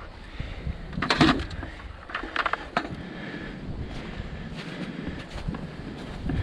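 Soil pours into a plastic bucket with a soft rattle.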